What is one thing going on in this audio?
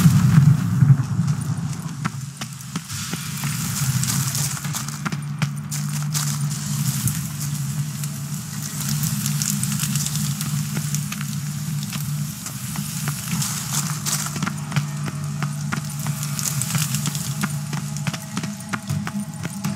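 Footsteps scuff and tap on a stone floor.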